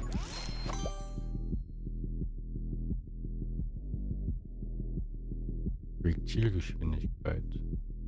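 Low, steady electronic game music plays with a soft pulsing beat.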